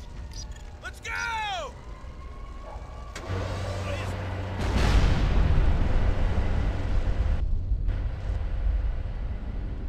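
Flames roar and crackle from a burning car.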